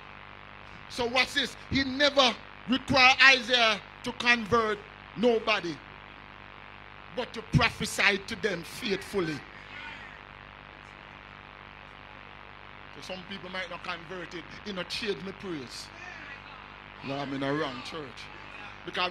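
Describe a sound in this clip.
An elderly man preaches with animation through a microphone.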